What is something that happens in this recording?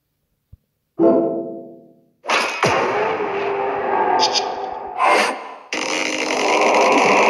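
A magical blast bursts and roars loudly.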